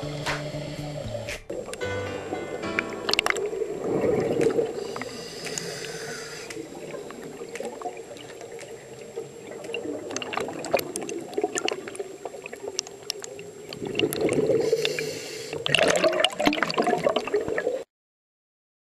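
Air bubbles gurgle and burble from a diver's breathing gear underwater.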